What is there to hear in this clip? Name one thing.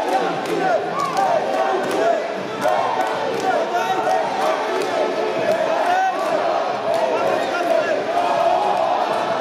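Children shout and call out throughout a large echoing hall.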